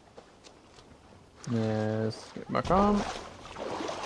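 Water splashes as a person wades through shallow water.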